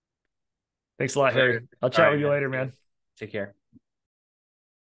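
A second man answers cheerfully over an online call.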